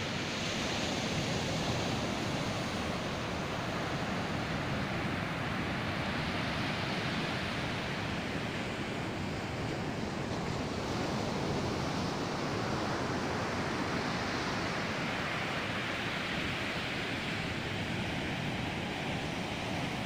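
Wind blows hard, rumbling and buffeting.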